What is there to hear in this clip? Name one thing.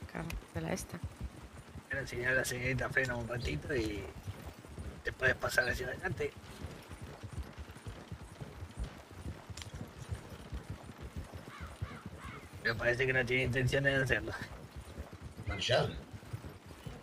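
Wooden carriage wheels rumble and rattle over the ground.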